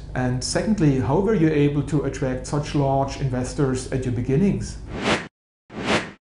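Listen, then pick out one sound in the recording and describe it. A middle-aged man speaks calmly and steadily into a close microphone.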